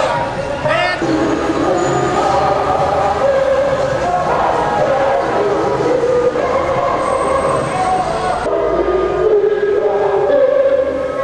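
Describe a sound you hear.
Music plays loudly from a truck's loudspeaker.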